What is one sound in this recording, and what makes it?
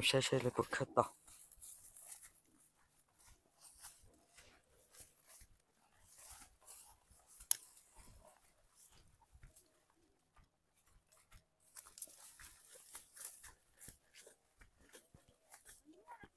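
Dry grass rustles and crackles as someone pushes through it on foot.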